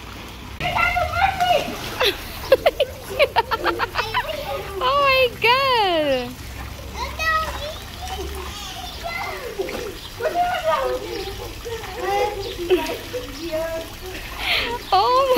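A young girl talks and squeals excitedly close by.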